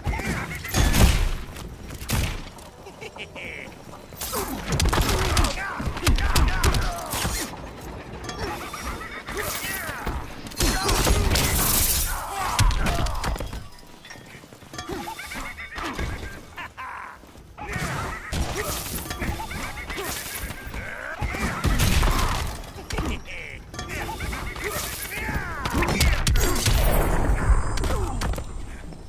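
Punches and kicks land with heavy thuds in a fighting video game.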